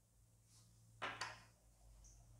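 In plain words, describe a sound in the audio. A pipe stem clicks as it is pulled from its bowl.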